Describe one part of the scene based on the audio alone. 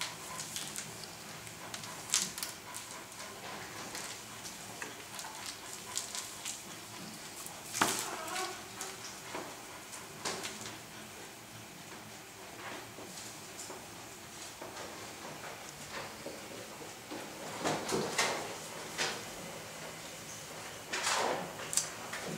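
A puppy shakes and drags a soft toy across the floor.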